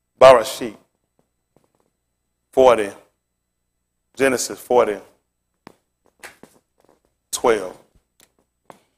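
A man speaks in short, loud bursts through a microphone in a quiet room.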